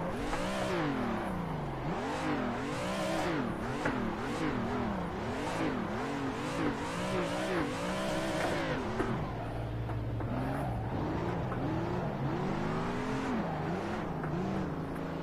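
Tyres squeal on asphalt.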